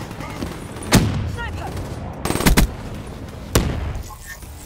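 Gunshots crack sharply a few times.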